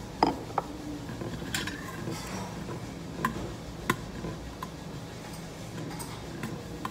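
Metal chopsticks clink against a metal bowl while mixing food.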